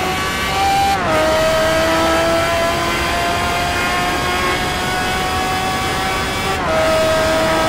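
A racing car engine briefly drops in pitch as it shifts up a gear.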